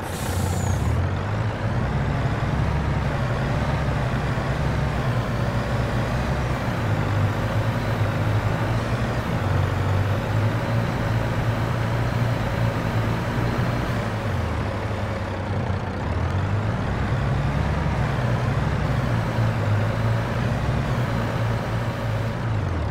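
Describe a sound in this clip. A heavy truck's diesel engine rumbles and labours steadily.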